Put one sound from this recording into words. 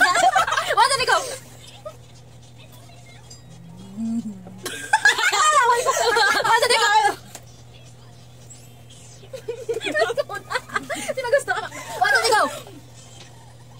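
Young girls laugh and shriek loudly close by.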